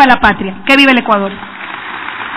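A young woman speaks firmly into a microphone.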